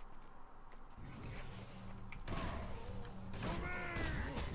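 Magic spells whoosh and ring as figures fight in a game.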